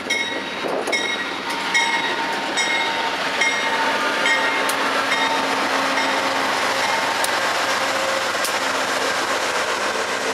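A train's engine drones loudly as it passes close by.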